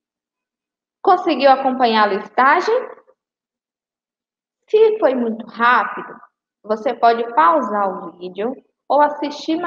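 A woman speaks calmly through a microphone, with short pauses.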